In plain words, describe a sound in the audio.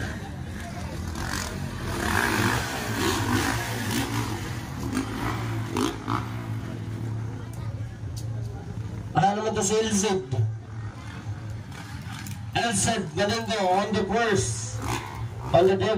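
Dirt bike engines roar and rev nearby.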